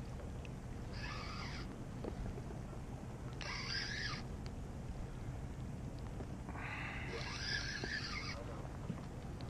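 A fishing reel's drag buzzes in short bursts as line is pulled out.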